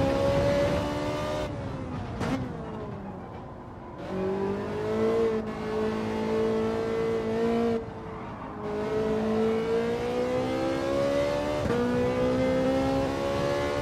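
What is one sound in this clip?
A racing car engine roars, dropping in pitch as it slows and rising as it speeds up again.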